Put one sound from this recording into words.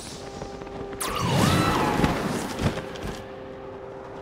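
A magical whoosh swells up with a bright chiming burst.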